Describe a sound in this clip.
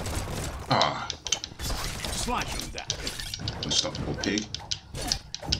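Sword slashes whoosh in quick bursts.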